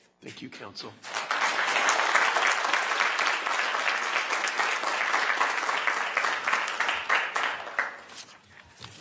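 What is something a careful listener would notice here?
An audience applauds in a room.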